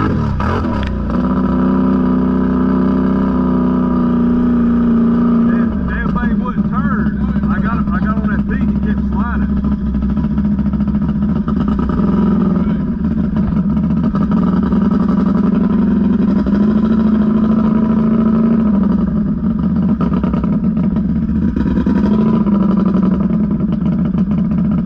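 Other all-terrain vehicle engines rumble nearby.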